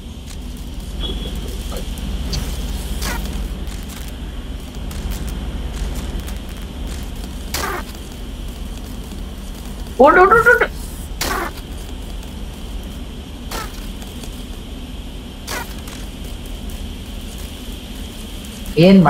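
A small robot's metal legs tap and skitter across hard surfaces.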